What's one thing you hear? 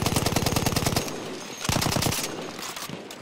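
A machine gun fires in rapid bursts close by.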